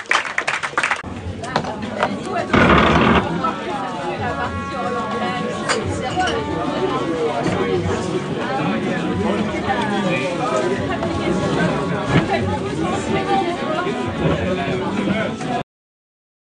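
A crowd of men and women chatters nearby.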